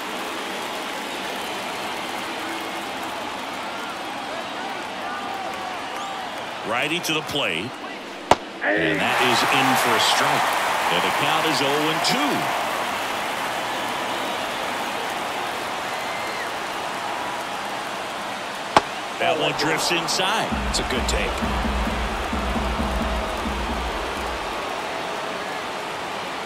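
A crowd murmurs steadily in a large open stadium.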